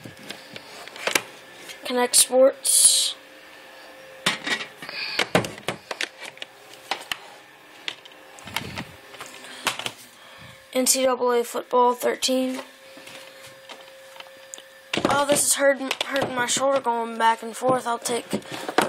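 Plastic game cases clatter and knock as they are handled.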